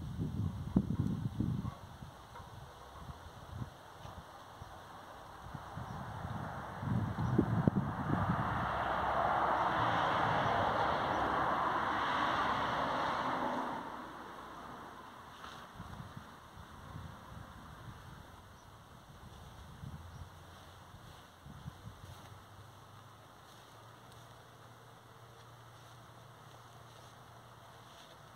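Hands rustle and scrape in soil and dry grass nearby.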